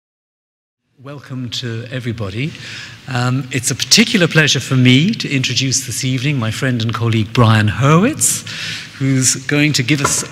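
A man speaks calmly into a microphone, heard through loudspeakers in a large echoing hall.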